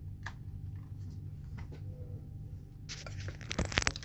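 A game controller is set down with a soft knock.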